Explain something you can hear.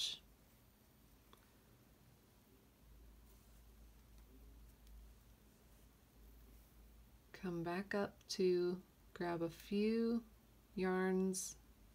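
Thread rasps softly as it is pulled through cloth.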